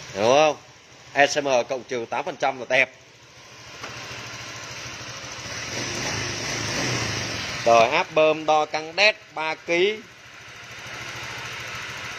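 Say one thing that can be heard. A motorbike engine idles steadily close by.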